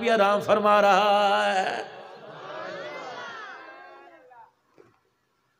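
A man sings a drawn-out, melodic chant through a microphone.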